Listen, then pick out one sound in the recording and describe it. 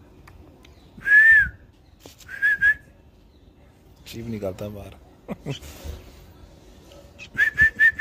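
A baby bird chirps shrilly in short bursts.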